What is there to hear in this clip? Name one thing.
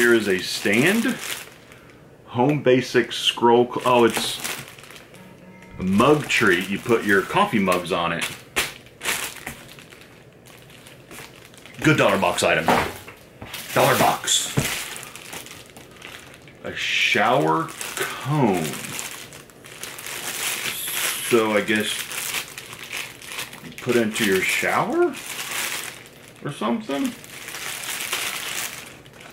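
A plastic bag crinkles and rustles in a man's hands.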